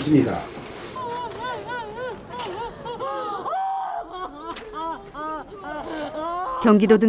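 A woman wails and sobs loudly.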